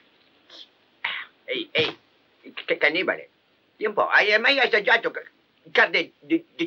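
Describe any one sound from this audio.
A man speaks taunting lines with animation, close by.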